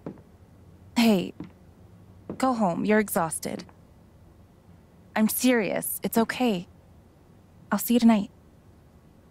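A young woman speaks calmly and gently, close by.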